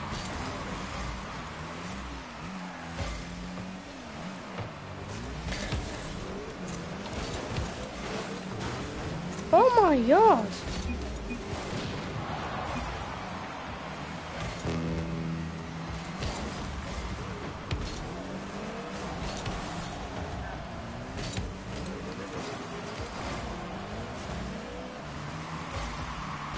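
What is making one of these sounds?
A car engine hums and revs steadily throughout.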